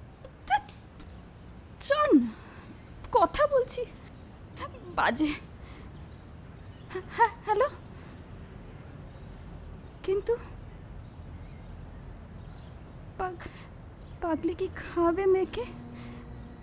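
A woman speaks emotionally into a phone, close by.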